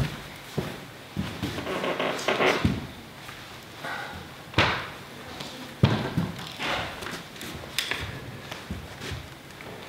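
Papers rustle and thud as a man handles things.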